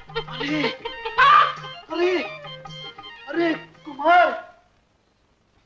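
A man talks loudly and with animation.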